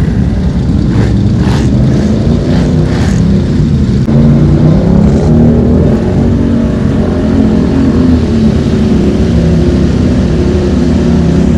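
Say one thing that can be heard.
Mud splashes and squelches under spinning tyres.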